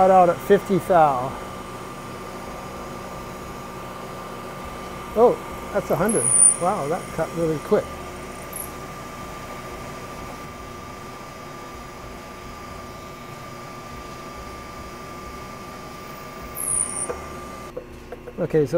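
A milling machine whirs steadily as it cuts metal.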